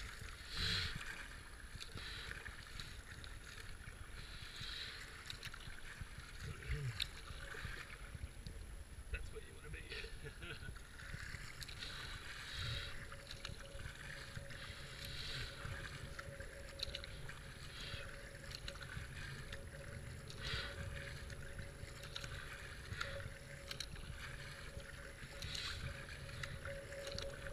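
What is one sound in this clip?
Fast river water rushes and gurgles around a kayak.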